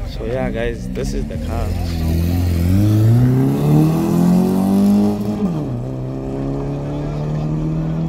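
A car engine revs hard nearby, climbing in pitch and then dropping back to a steady drone.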